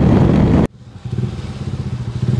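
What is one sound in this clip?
A motorcycle engine idles at low revs.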